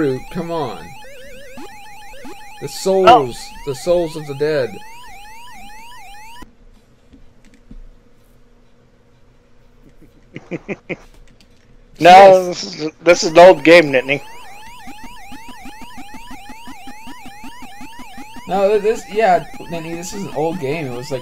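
An arcade game's siren warbles steadily up and down.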